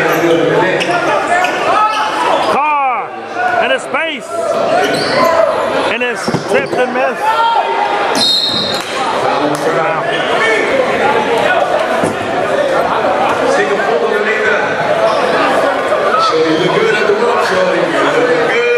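A crowd chatters and cheers in an echoing gym.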